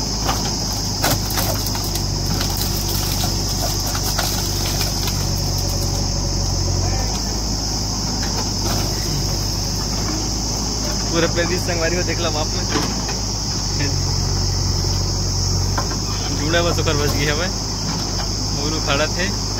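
Branches and brush crackle and snap as a digger bucket pushes through them.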